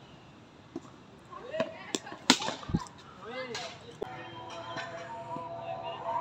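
A cricket bat knocks a ball.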